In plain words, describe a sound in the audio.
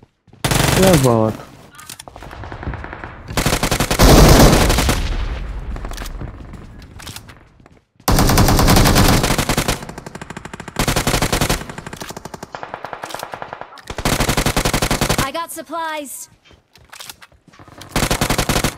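Rapid bursts of gunfire crack loudly.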